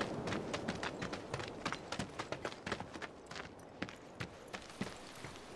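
Footsteps crunch on gravel at a walking pace.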